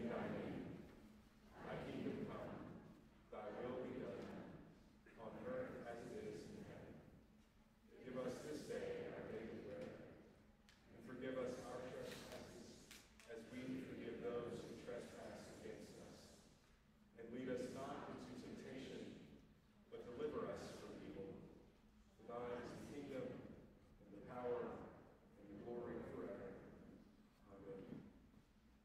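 A middle-aged man speaks calmly and steadily through a microphone in a reverberant hall.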